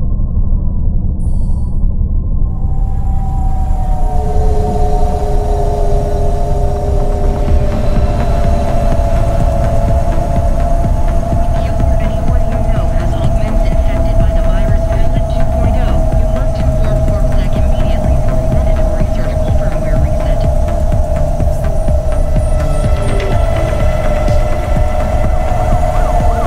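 A flying vehicle's engine hums and drones steadily.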